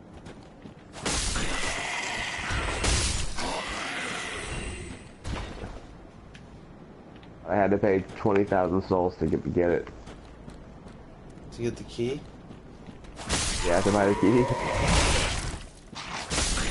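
Swords clash and strike loudly in a fight.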